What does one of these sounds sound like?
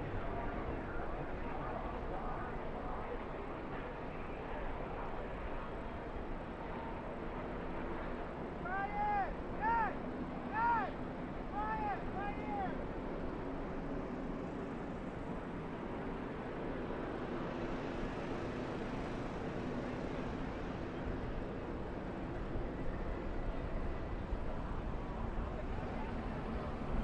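Race truck engines roar steadily as a pack of trucks races by.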